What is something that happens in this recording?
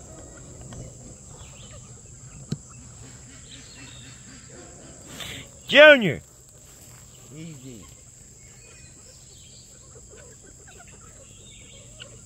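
Chickens cluck softly and steadily outdoors.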